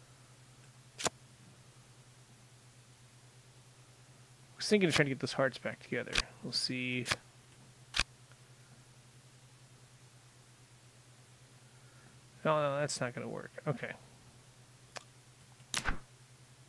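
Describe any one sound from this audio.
Soft clicks sound as cards drop into place.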